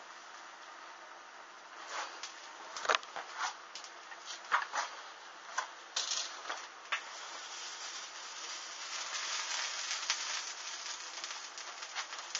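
Small flames crackle and pop.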